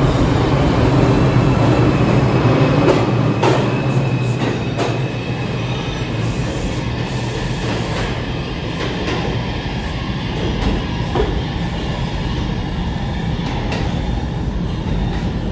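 Train wheels clatter and clank over the rail joints.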